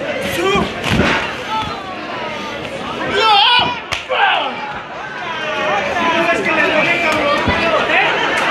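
Wrestlers' bodies thud onto a ring canvas.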